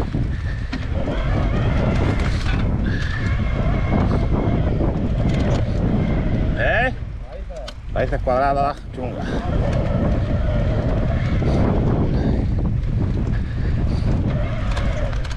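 Bicycle tyres rumble and crunch over a dirt trail.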